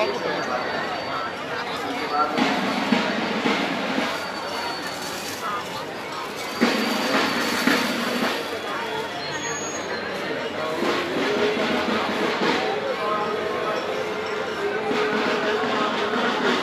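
A crowd of men chatter loudly all around.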